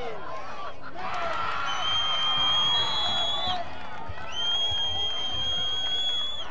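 A referee's whistle blows sharply, twice.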